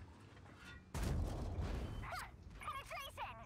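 A tank gun fires with a loud boom.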